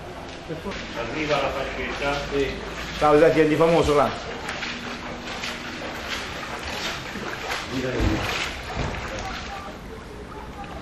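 Boots slosh and splash through shallow water.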